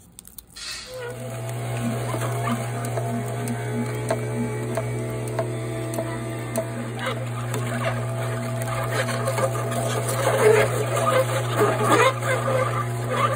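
A juicer motor hums steadily.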